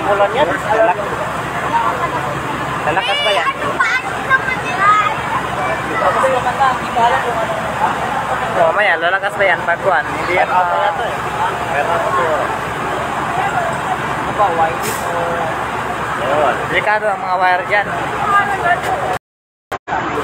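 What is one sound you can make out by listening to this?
A crowd of people shouts and talks excitedly outdoors.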